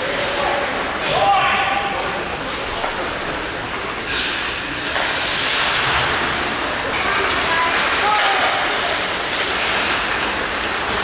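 A crowd cheers and shouts in a large echoing arena.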